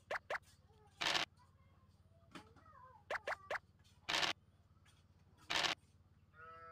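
Dice rattle briefly as they are rolled.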